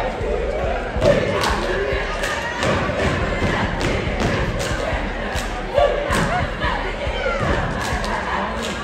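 Dancers stomp and clap in rhythm.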